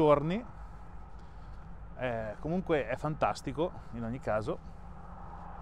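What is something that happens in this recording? A middle-aged man talks calmly into a clip-on microphone, close up.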